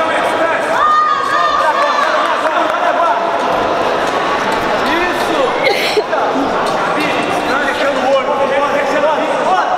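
A crowd of spectators shouts and cheers loudly in a large echoing hall.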